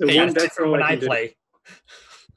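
A young man talks with animation over an online call.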